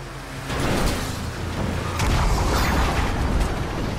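A vehicle explodes with a loud boom.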